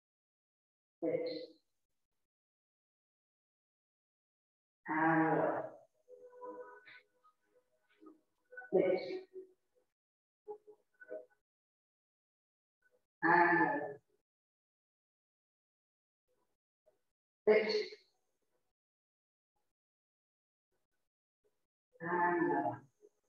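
A woman gives short spoken cues through a microphone, with pauses between them.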